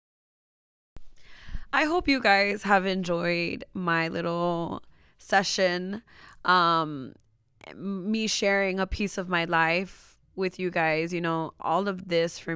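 A young woman speaks with animation into a microphone, close by.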